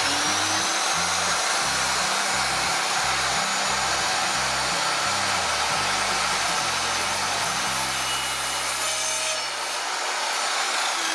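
A power saw whirs loudly and steadily close by.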